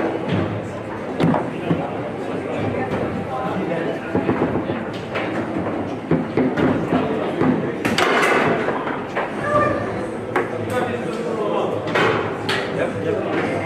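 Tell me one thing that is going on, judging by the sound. Foosball players spin and slide the rods.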